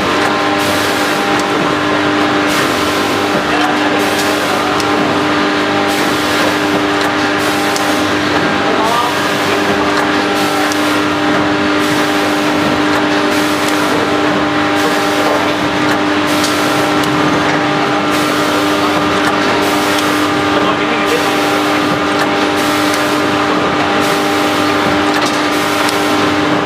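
A packaging machine hums steadily.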